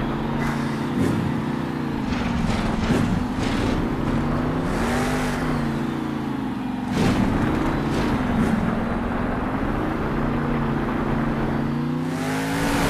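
Heavy tyres thud and crash as a monster truck lands on dirt.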